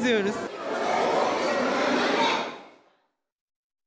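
Young children chatter and call out nearby in an echoing room.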